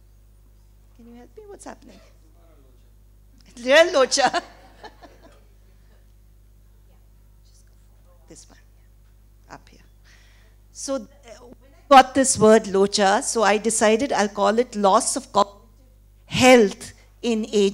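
A woman speaks into a microphone in a large hall, with pauses between phrases.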